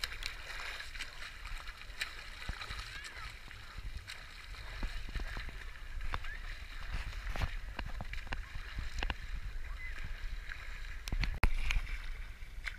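A swimmer splashes through water with steady strokes.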